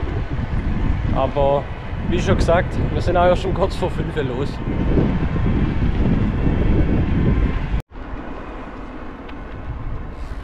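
Wind buffets a microphone loudly outdoors.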